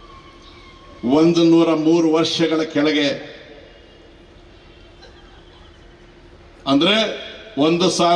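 An older man speaks forcefully into a microphone over loudspeakers, with pauses between phrases.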